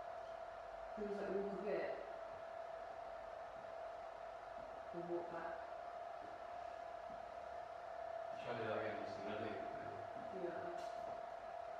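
A young man speaks briefly and quietly nearby.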